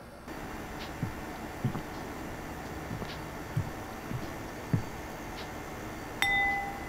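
Footsteps pad across a floor.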